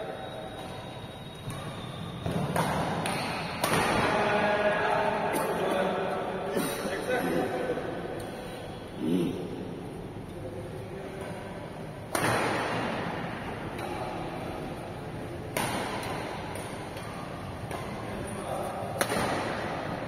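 Badminton rackets smack a shuttlecock with sharp cracks that echo around a large hall.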